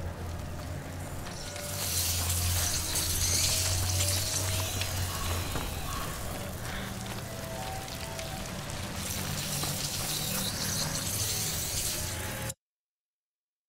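Footsteps run over dirt and gravel.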